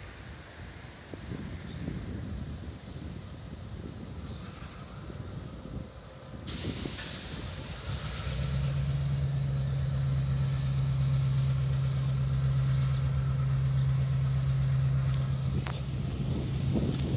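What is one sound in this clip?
A diesel locomotive engine rumbles nearby.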